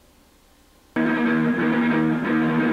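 An electric guitar plays loudly.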